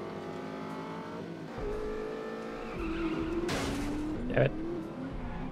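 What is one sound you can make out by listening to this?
A car engine hums and changes pitch as it accelerates and shifts.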